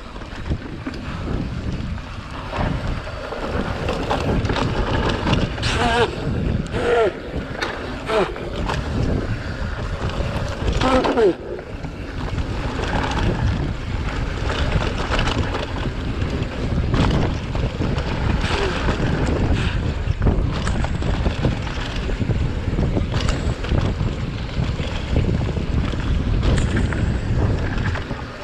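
Mountain bike tyres roll downhill over a dirt trail.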